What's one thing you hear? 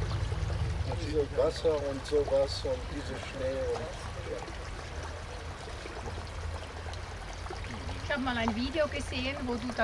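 An elderly man speaks with animation outdoors to a group.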